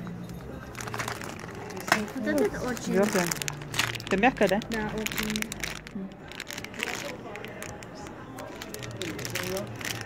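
Plastic packaging crinkles as it is handled.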